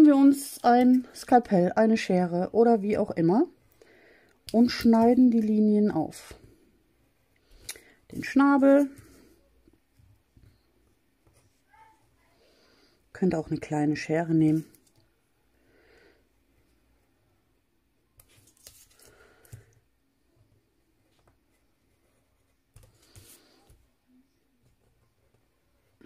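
A craft knife scratches softly as it cuts through paper.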